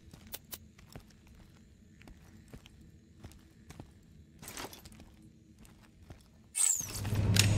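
Soft electronic clicks tick now and then.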